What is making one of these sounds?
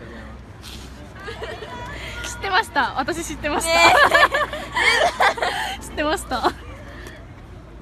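A young woman speaks tearfully.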